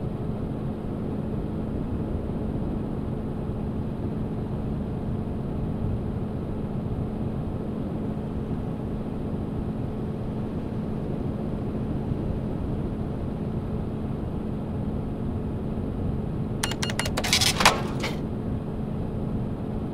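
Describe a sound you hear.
A truck engine hums steadily as the truck drives along a highway.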